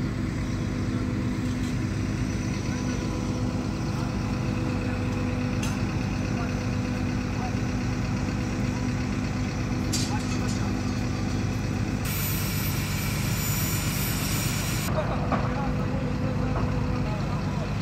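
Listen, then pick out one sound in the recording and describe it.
A heavy crane engine rumbles steadily nearby.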